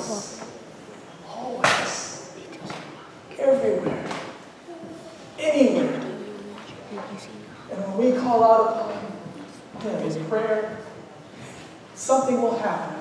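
A middle-aged man speaks with animation through a microphone in a reverberant hall.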